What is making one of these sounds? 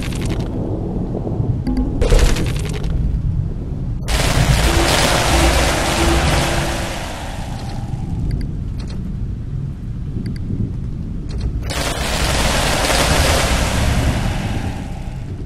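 Towers fire at swarming creatures with rapid zapping and crackling bursts.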